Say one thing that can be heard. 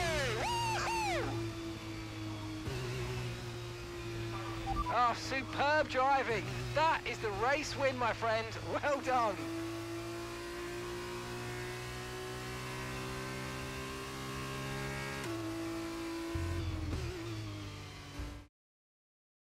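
A racing car engine hums steadily at idle.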